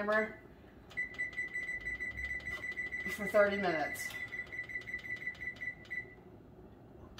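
An oven gives a long steady beep.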